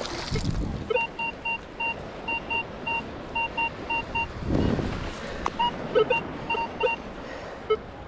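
A metal detector beeps in quick, regular pulses.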